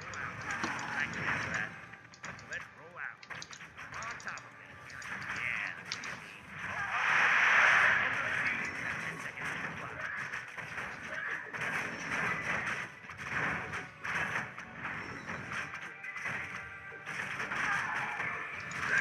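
Swords clash and spells crackle in a game battle.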